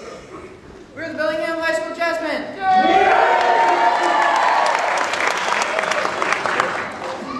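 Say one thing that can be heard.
A jazz big band's horns play loud, bright chords in a large hall.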